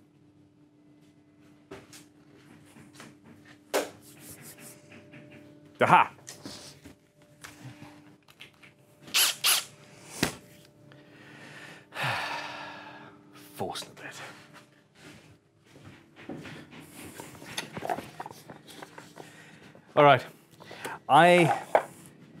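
Wooden objects knock and clatter on a bench.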